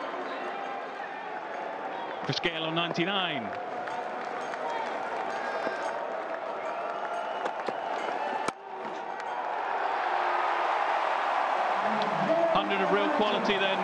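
A large outdoor crowd cheers loudly.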